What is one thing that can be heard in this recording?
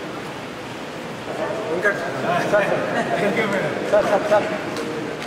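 Men and women murmur and chatter nearby.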